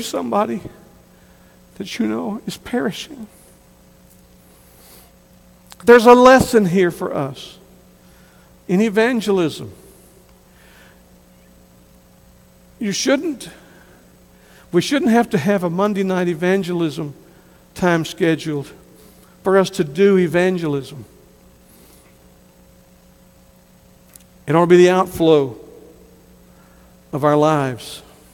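A middle-aged man preaches with emphasis through a microphone, pausing often, in a large echoing hall.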